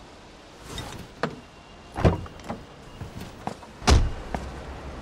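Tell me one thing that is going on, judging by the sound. A man unbuckles a seatbelt with a click.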